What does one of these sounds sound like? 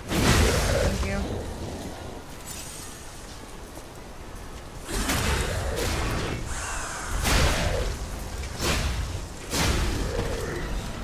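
Weapons clash and strike in loud bursts of combat.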